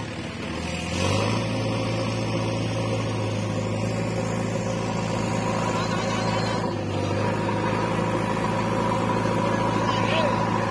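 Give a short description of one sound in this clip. A tractor engine roars and strains as it pulls out of mud.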